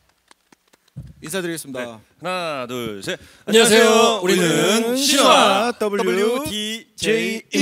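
Young men sing together into microphones.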